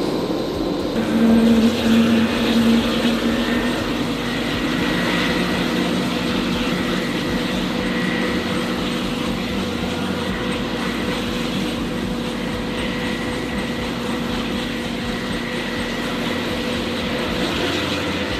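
A helicopter engine whines steadily.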